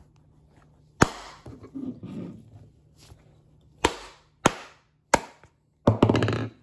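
A wooden mallet thumps sharply into a leather glove.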